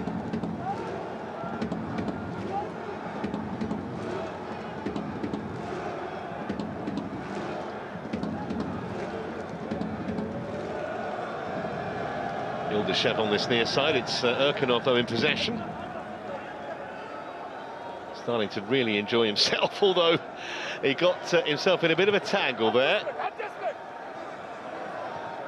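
A stadium crowd murmurs and cheers steadily in a large open arena.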